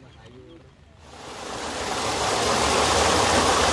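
Water splashes and rushes over rocks.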